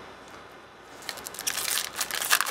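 Plastic card sleeves rustle and crinkle as hands handle them.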